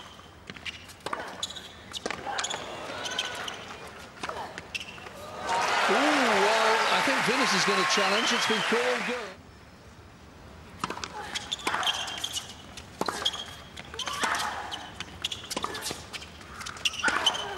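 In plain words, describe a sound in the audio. Tennis balls are struck with sharp pops in a rally.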